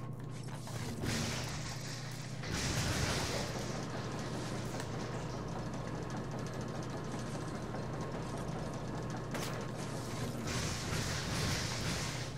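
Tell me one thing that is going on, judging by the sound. Energy blasts crackle and roar in bursts.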